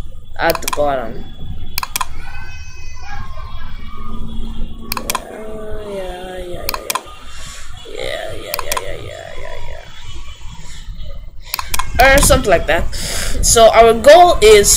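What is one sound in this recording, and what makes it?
A boy talks with animation close to a microphone.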